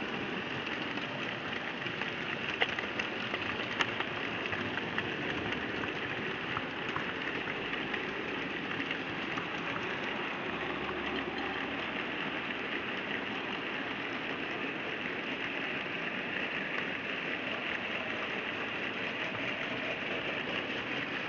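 A small model train whirs and rumbles steadily along its track.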